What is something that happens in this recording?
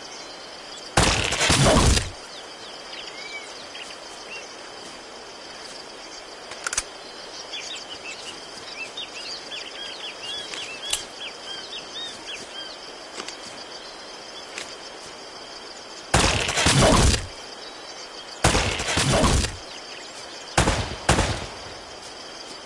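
Gunshots ring out in short bursts and echo.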